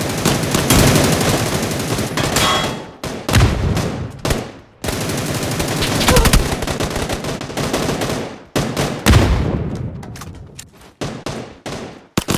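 Rapid gunfire bursts crack loudly in short volleys.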